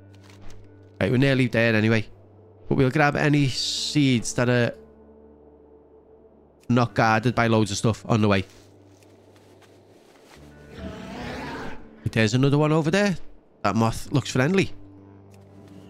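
A man talks calmly and with animation into a close microphone, in short bursts with pauses.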